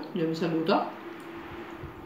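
A middle-aged woman eats, chewing noisily.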